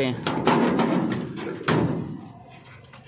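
A metal door bolt scrapes and clanks open.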